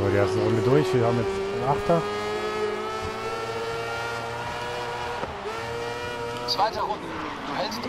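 A racing car engine whines at high revs, shifting gears and rising in pitch.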